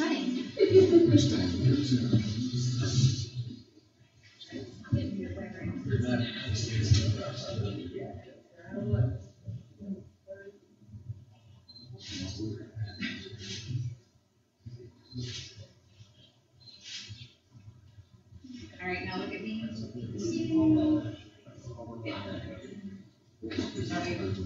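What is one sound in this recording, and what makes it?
Several men and women talk and murmur nearby in a room.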